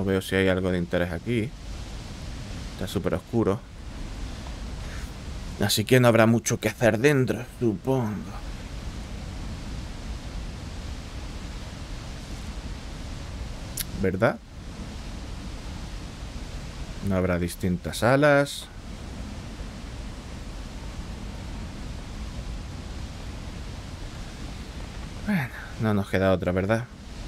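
A man speaks with animation through a close microphone.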